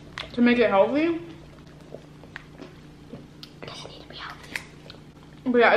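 A girl sips a drink through a straw.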